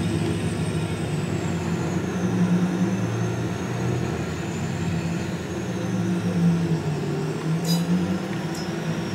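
A car engine hums steadily as it drives.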